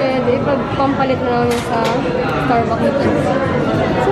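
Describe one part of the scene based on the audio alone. A young woman talks quietly close by.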